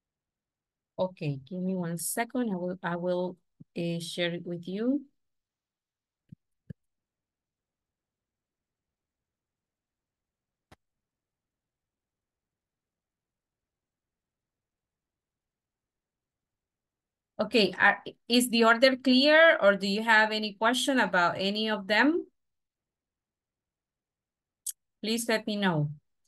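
A woman speaks calmly through an online call, with long pauses.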